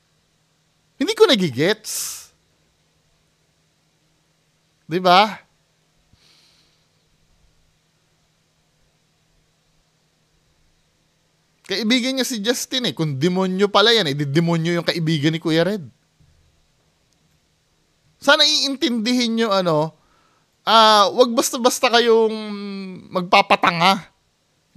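A man talks with animation close to a microphone, in bursts with pauses.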